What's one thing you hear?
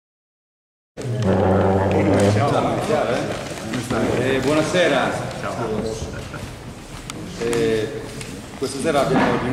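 A middle-aged man speaks calmly in a room with some echo.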